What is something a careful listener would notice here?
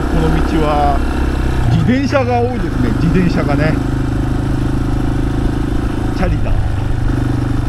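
A motorcycle engine revs up and drops in pitch with gear changes.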